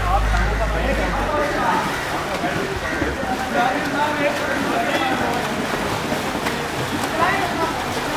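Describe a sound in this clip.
Many men talk and call out nearby.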